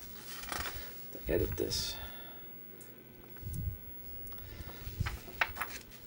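Paper pages rustle as a booklet's pages are turned.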